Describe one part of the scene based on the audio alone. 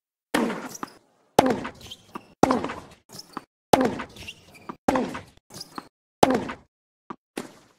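A tennis racket strikes a ball with sharp pops, back and forth.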